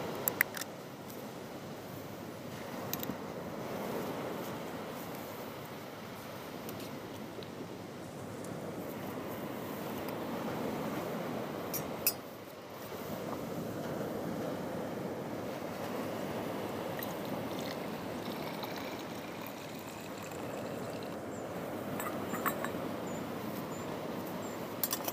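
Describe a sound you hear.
Gentle waves wash onto a beach, swelling and fading outdoors.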